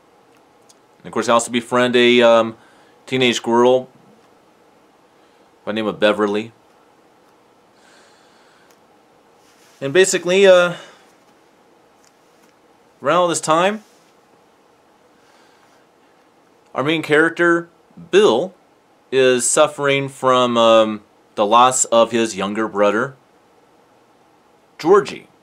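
A man speaks calmly and close to a microphone, in short phrases with pauses.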